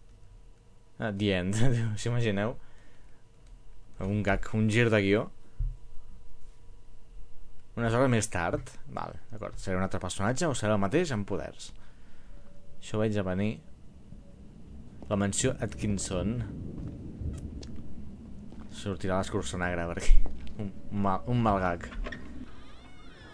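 A middle-aged man talks with animation into a microphone, close by.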